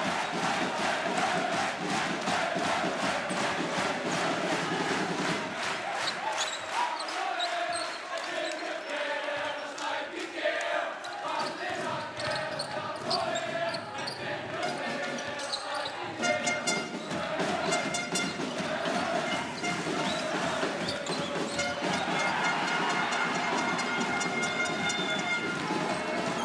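A large crowd cheers and claps loudly in an echoing arena.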